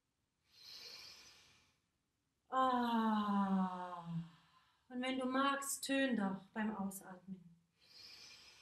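A young woman breathes in deeply and audibly.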